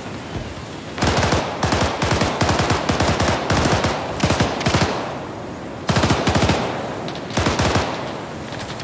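A machine gun fires rapid bursts nearby.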